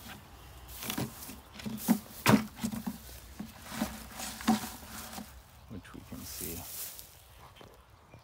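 Tall grass rustles and brushes close against the microphone.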